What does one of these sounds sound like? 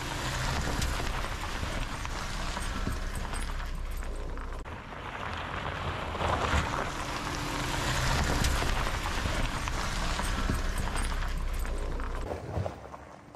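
An engine rumbles low as a truck drives slowly closer.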